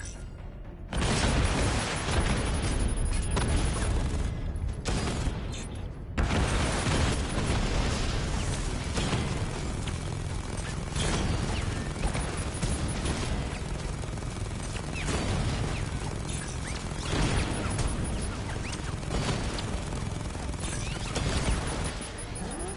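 Cannon shots boom again and again.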